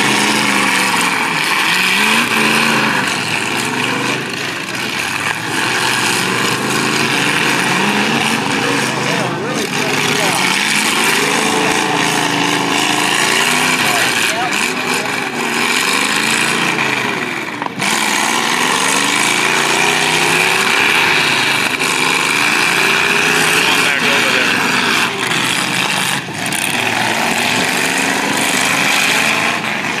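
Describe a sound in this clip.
Car engines roar and rev loudly across a dirt field outdoors.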